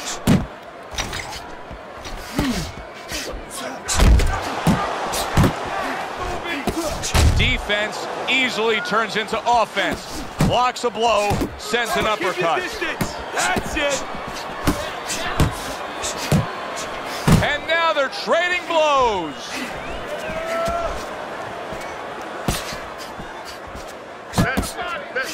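Boxing gloves thud against bodies in quick punches.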